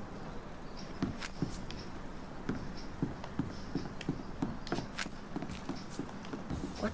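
Footsteps thump on wooden boards.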